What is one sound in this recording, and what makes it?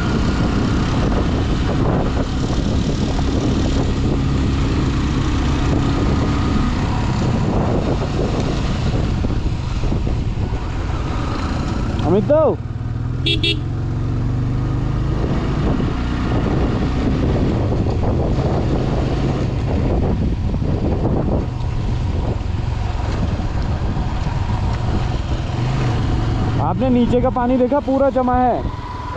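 Wind rushes loudly past a rider.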